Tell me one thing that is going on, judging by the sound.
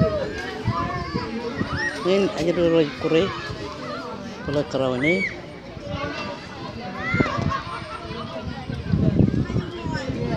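Children shout and squeal at play some distance away outdoors.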